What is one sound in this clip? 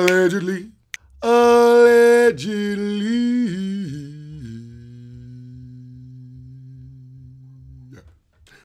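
A man sings loud, long held notes close to a microphone, then trails off into a low hum.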